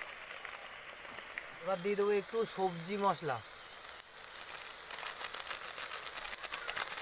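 A plastic spice packet crinkles.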